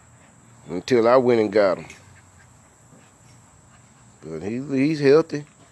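A puppy yelps and whines in high, drawn-out cries nearby.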